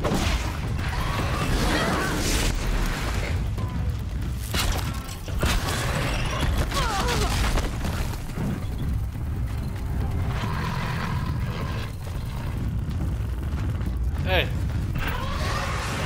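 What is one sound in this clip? Metal parts of a large machine creature clank and whir as it moves.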